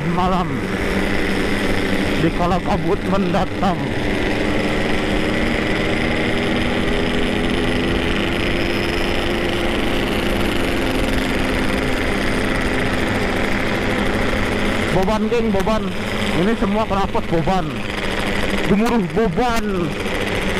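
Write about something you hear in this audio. Nearby motorcycle engines rev up and down in quick bursts.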